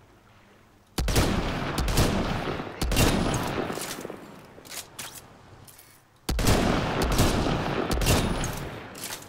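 A rifle fires loud shots that boom and echo.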